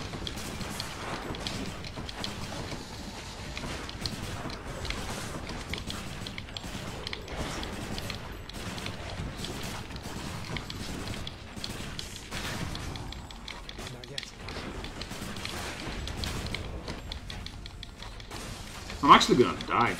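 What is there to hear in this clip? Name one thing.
Game combat sounds of slashing, clashing and magical blasts ring out rapidly.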